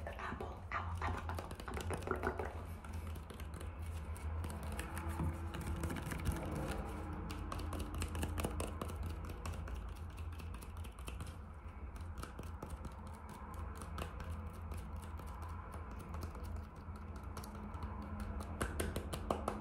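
Fingernails tap and scratch on an apple's skin close to a microphone.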